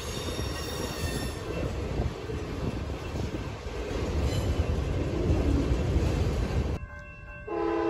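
A freight train rumbles and rattles past on the tracks.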